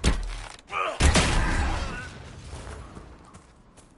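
Weapons clash and thud in a fight.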